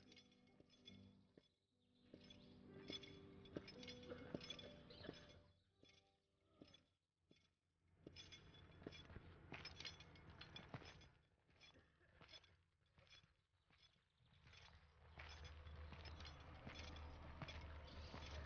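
Footsteps scuff slowly on stone.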